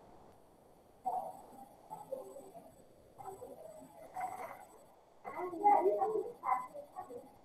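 A young woman speaks calmly and close to a microphone, as in an online call.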